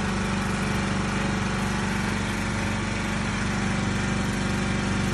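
A pressure washer motor hums steadily.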